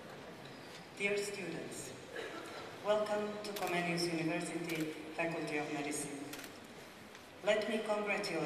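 A middle-aged woman reads out formally into a microphone in an echoing hall.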